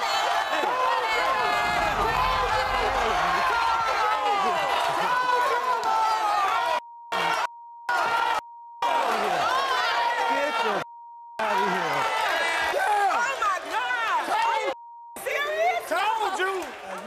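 Several people shout over each other with animation.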